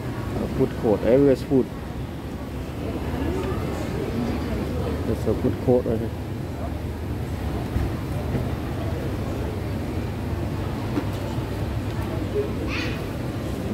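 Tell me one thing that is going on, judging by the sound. A crowd of shoppers murmurs in a large echoing hall.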